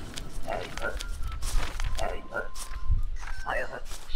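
Paper documents rustle and slide across a desk.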